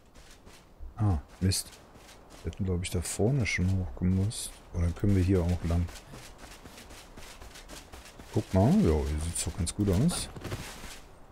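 A man talks calmly and closely into a microphone.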